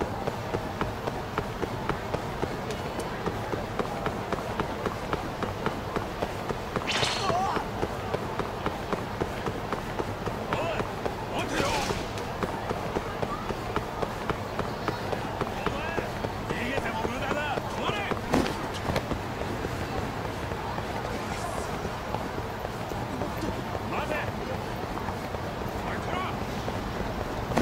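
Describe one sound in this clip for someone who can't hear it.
Quick running footsteps slap on hard pavement.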